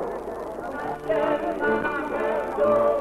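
A small band plays a lively tune on accordion and guitars.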